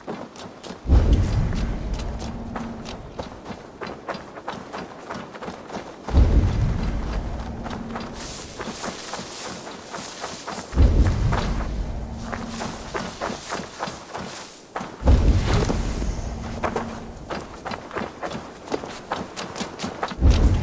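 Footsteps patter quickly over soft ground.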